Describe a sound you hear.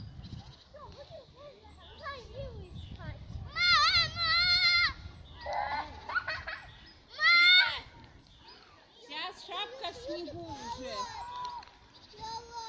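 Young girls squeal and shout playfully nearby.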